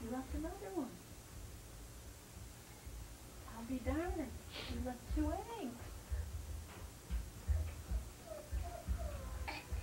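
A woman talks to a small child nearby.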